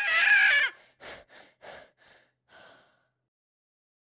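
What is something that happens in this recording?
A cartoon cat speaks in a high, squeaky voice.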